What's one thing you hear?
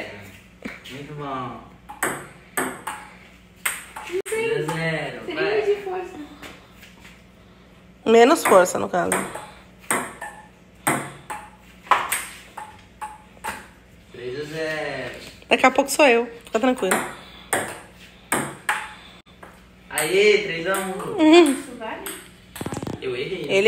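A ping-pong ball clicks sharply against paddles and a table.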